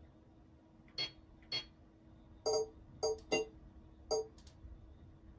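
Short electronic beeps sound as a game menu is clicked through.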